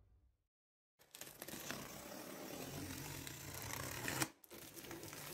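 A blade slices through packing tape on a cardboard box.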